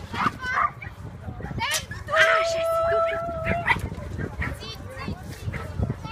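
A young woman calls out commands to a dog with animation.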